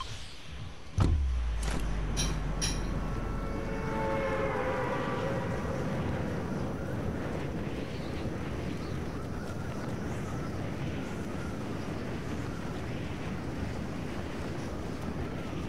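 Wind rushes loudly and steadily during a freefall.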